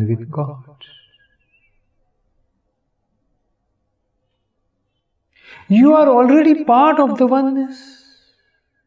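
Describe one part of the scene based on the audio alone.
An elderly man speaks calmly and expressively into a close microphone.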